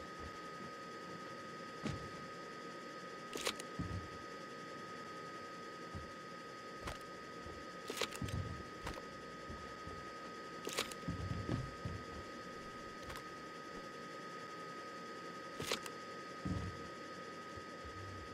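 A cardboard box thumps as it is dropped onto the floor.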